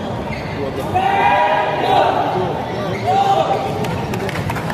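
Players shout to each other loudly across the court.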